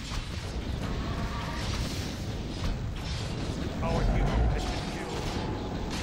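Fiery spells burst with booming blasts.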